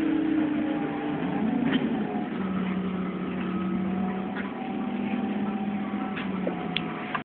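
A bus engine hums nearby.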